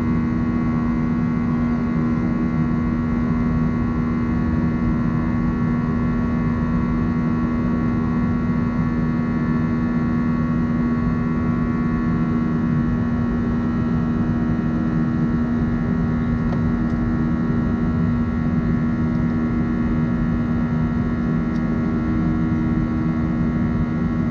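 A jet engine drones loudly and steadily, heard from inside an airliner cabin.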